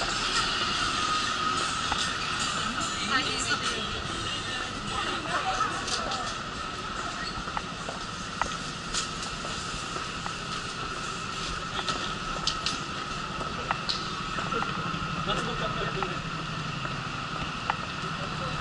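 Footsteps tap on pavement.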